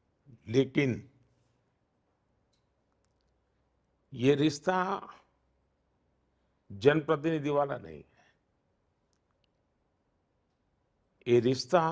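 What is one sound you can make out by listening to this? An elderly man speaks calmly in short bursts into a close microphone, with pauses between phrases.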